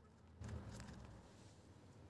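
Scissors snip through a thin plastic sheet.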